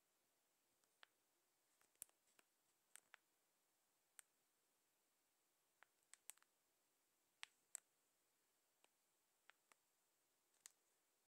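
A synthesizer gives off sparse, sharp clicks.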